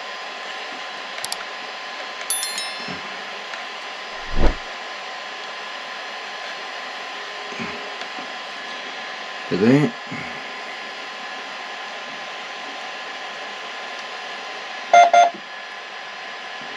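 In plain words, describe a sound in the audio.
A machine's fan hums steadily.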